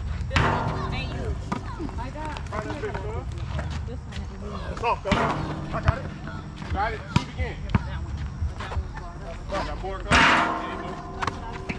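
A basketball clangs off a hoop's rim.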